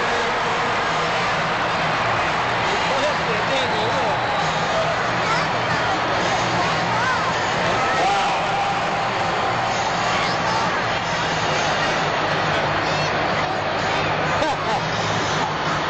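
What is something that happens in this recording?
Monster truck engines rumble and roar loudly.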